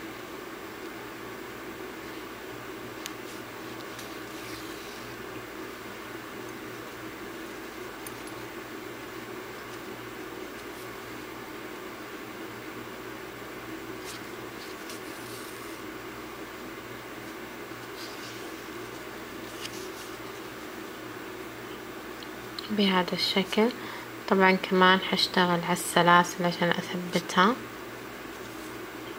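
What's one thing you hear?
Yarn softly rustles as it is pulled through knitted fabric.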